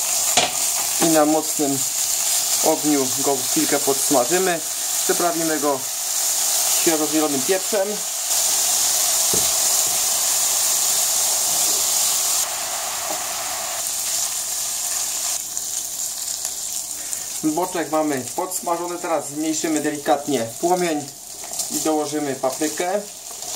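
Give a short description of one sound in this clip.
A spatula scrapes and stirs bacon in a frying pan.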